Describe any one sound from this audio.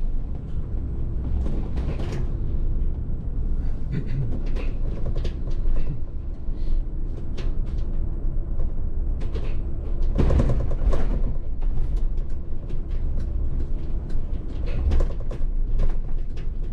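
A bus interior rattles and knocks over bumps.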